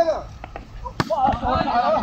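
A volleyball is struck with a dull thump.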